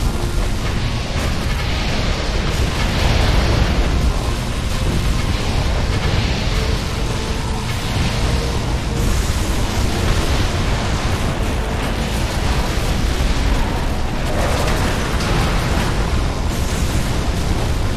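Turrets fire rapid bursts of laser and gun shots.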